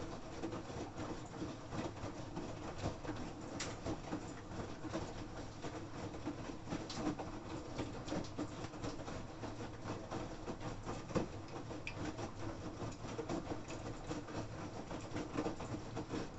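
Wet laundry sloshes and thumps inside a washing machine drum.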